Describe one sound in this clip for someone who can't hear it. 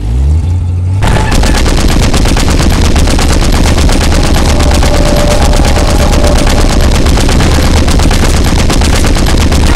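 A mounted heavy machine gun fires rapid bursts.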